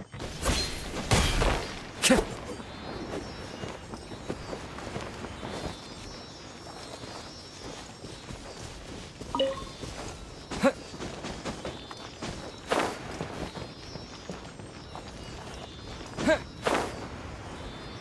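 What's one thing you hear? Wings flap and whoosh in short gusts.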